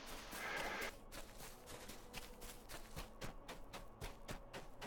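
Footsteps tread steadily through dry grass.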